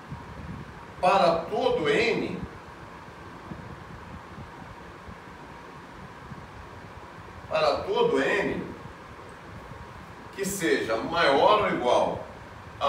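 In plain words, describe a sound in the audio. An older man speaks calmly in short phrases, close by.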